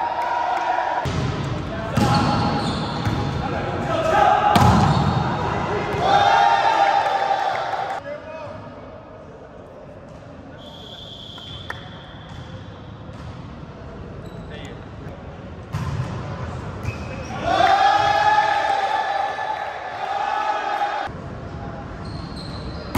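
A volleyball thuds as players strike it in a large echoing hall.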